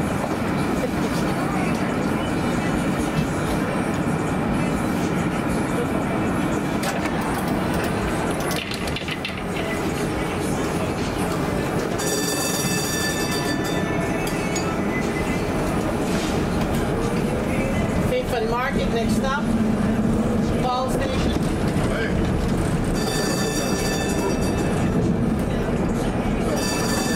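Traffic rumbles steadily in a busy street outdoors.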